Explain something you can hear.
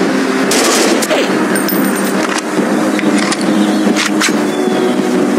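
Rifle shots crack sharply.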